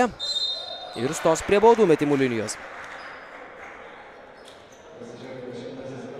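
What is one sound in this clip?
Basketball shoes squeak on a wooden court.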